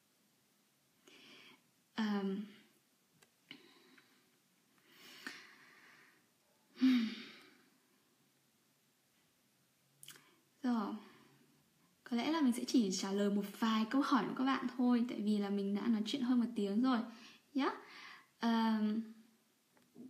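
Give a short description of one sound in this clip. A young woman speaks calmly and close to a microphone, with pauses.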